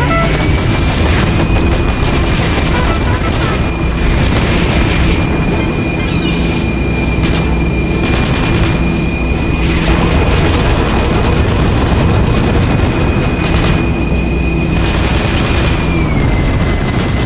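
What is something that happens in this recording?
A plane's propellers drone steadily.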